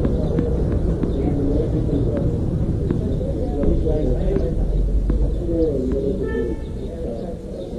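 A tennis ball bounces on a hard court a few times.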